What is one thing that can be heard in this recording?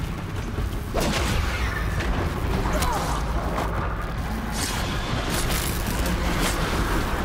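Metal weapons clash and strike a mechanical creature in quick bursts.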